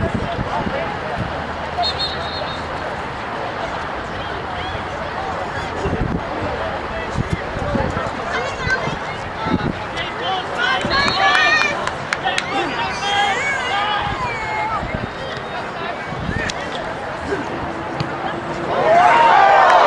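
A crowd of spectators murmurs and calls out outdoors.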